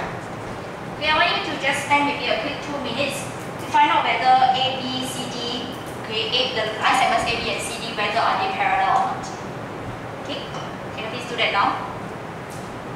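A young woman speaks calmly to a room.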